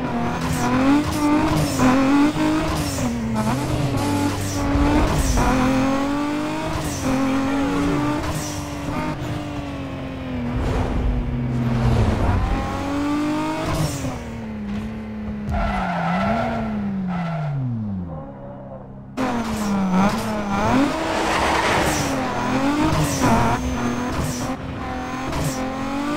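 A racing car engine roars loudly, revving up and dropping in pitch with each gear change.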